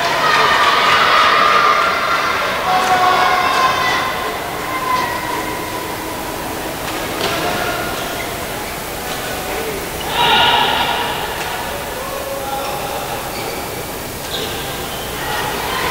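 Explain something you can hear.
Voices of a crowd murmur in a large echoing hall.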